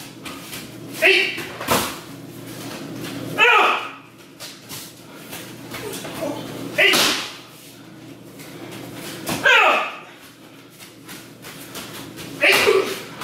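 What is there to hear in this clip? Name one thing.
Young men shout sharply in a large echoing room.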